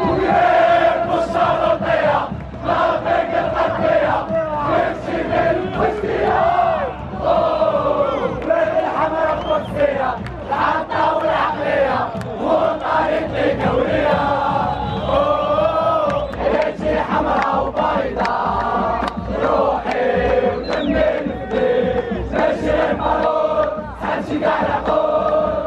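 A large crowd of young men sings and chants loudly in unison, in a big open stadium.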